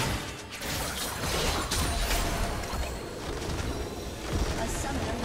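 Magic spells crackle and whoosh in a busy fight.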